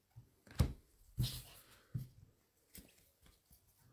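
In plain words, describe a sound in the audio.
Trading cards rustle and slide against each other in gloved hands.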